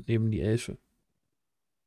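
A man speaks briefly and cheerfully over an online call.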